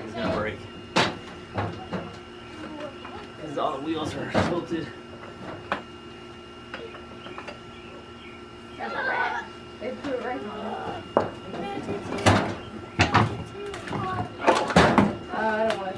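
Metal clanks and knocks against metal.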